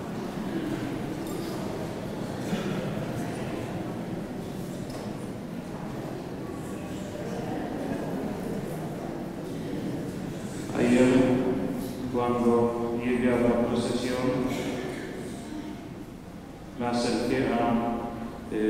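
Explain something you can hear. A middle-aged man speaks calmly into a microphone over loudspeakers in a large echoing hall.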